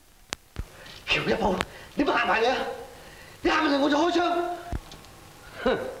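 A man speaks sternly with a raised voice.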